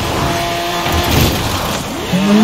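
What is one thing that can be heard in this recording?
A car crashes into a roadside post with a sharp bang.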